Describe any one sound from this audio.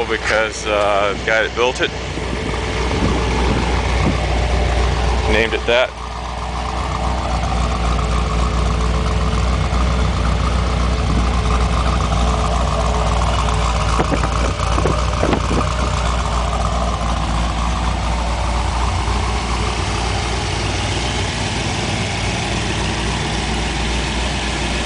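A car engine idles with a deep, rumbling exhaust burble close by.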